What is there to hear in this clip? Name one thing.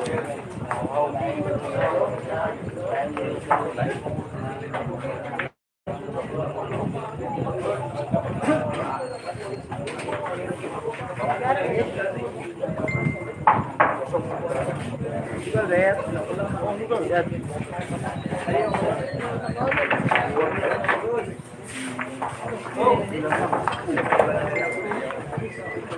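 A crowd of men and women chatter nearby in a roomy space.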